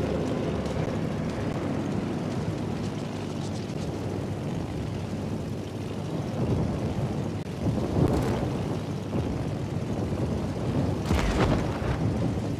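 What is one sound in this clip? Aircraft engines drone steadily overhead.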